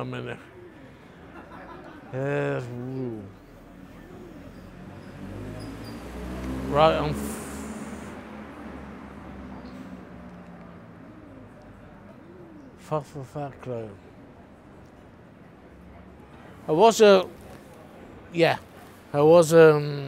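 A middle-aged man speaks close up, calmly and with pauses.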